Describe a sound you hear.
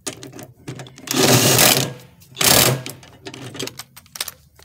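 A power drill whirs in short bursts.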